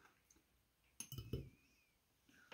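A glass is set down on paper with a soft knock.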